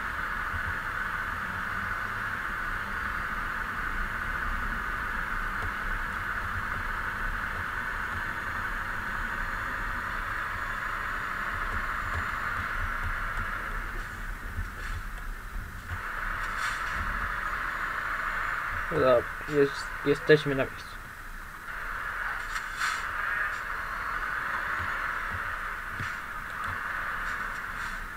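A truck engine hums steadily as it drives along.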